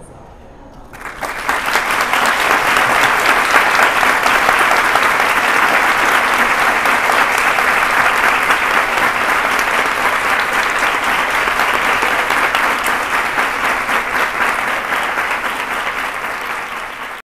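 A large audience claps and cheers loudly.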